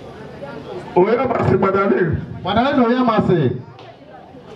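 A man speaks loudly with animation through a microphone outdoors.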